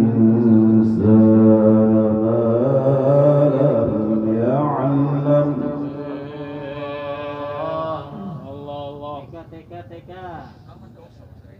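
A man sings a long, wavering melody into a microphone, heard through loudspeakers.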